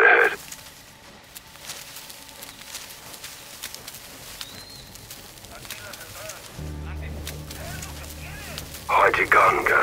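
Tall grass rustles as someone crawls through it.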